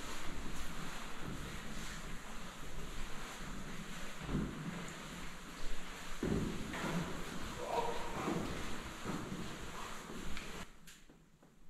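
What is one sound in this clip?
Footsteps climb stone stairs in an echoing stairwell.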